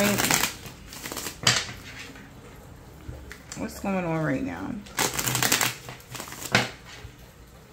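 Playing cards shuffle and riffle close by.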